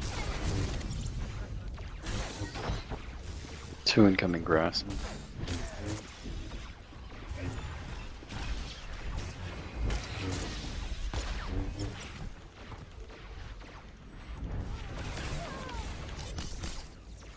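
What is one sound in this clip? Laser blasts and energy weapon effects crackle in a fast fight.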